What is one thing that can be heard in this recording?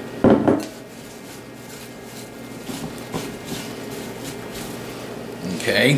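Apple slices rustle and clack in a bowl as hands toss them.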